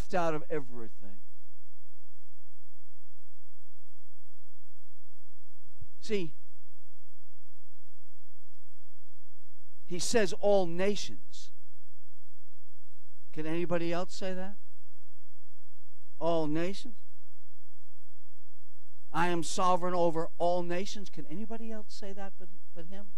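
An elderly man speaks with long pauses through a microphone.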